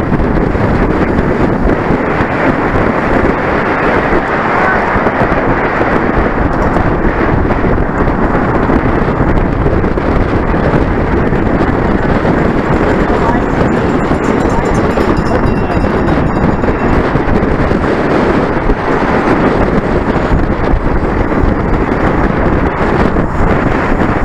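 Strong wind roars loudly past the microphone.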